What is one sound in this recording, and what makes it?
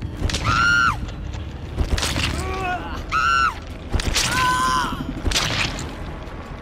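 A woman screams in terror, again and again.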